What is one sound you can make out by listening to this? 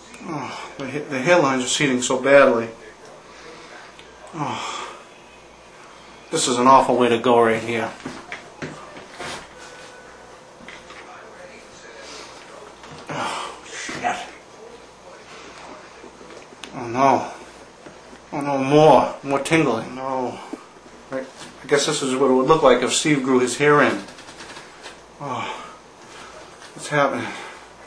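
A man talks close by with animation, in bursts with pauses.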